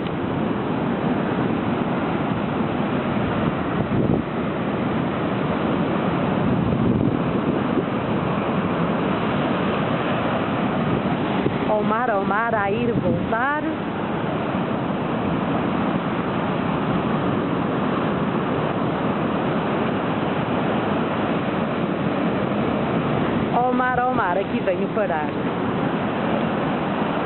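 Waves crash and surge over rocks.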